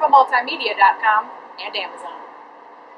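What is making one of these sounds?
A young woman speaks brightly, close by.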